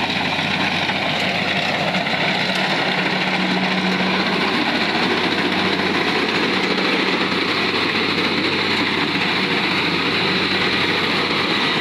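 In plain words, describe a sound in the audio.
A combine harvester cuts and threshes crop with a rattling whir.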